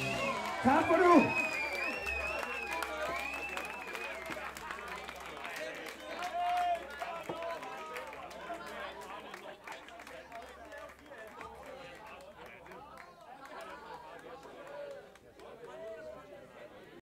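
A rock band plays live with drums and electric guitar.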